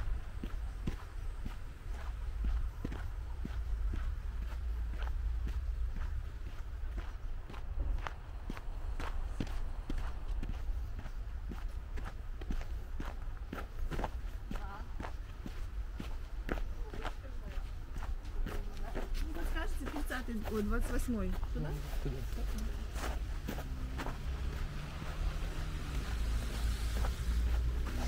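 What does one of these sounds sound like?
Footsteps crunch steadily on packed snow close by.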